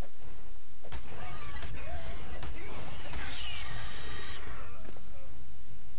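A large creature screeches and shrieks.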